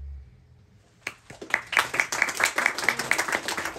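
An electric guitar strums a quick rhythm.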